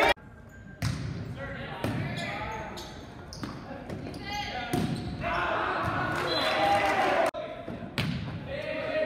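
A volleyball is struck with sharp slaps in an echoing gym.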